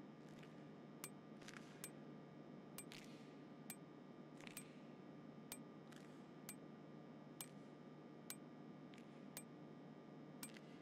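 A menu clicks softly with each step through a list.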